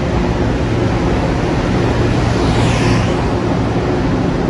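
Train brakes squeal as the train slows.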